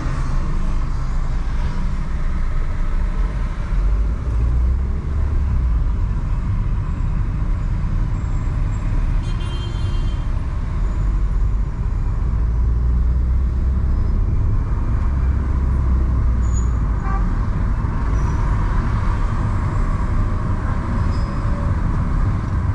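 A car engine hums steadily as it drives along a city street.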